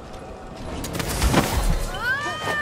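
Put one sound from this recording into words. Blades clash and ring in a sudden fight.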